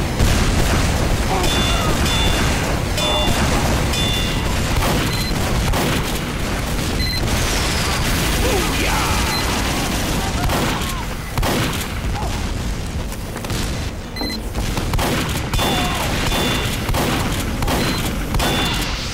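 Gunfire and explosions crackle and boom throughout.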